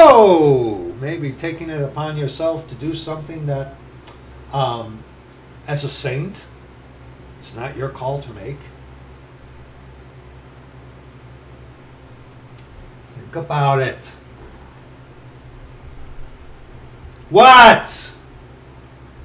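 A middle-aged man speaks calmly and close up, with pauses.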